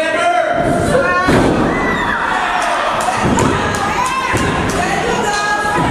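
Bodies thud heavily onto a wrestling ring mat.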